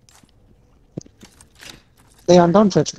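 A key turns in a lock with a metallic click.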